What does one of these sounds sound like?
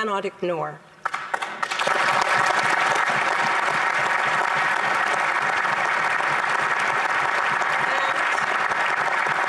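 A crowd applauds loudly and steadily in a large hall.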